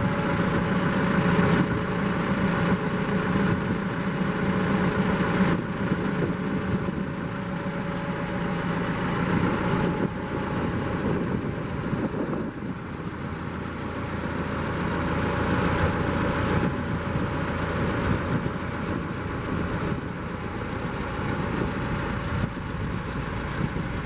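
A tractor engine idles nearby with a steady low rumble.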